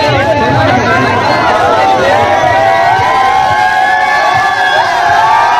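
A large crowd of young men shouts and chatters excitedly close by.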